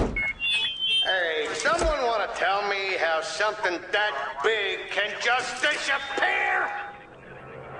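A man shouts loudly through a megaphone.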